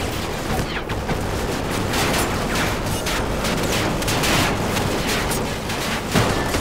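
A helicopter's rotor thuds nearby.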